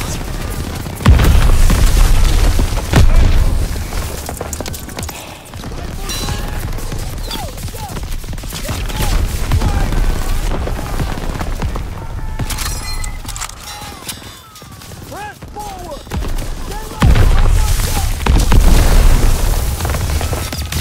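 Deep explosions boom and rumble nearby.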